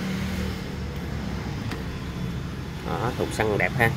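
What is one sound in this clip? A motorcycle seat hinge creaks as the seat is lifted open.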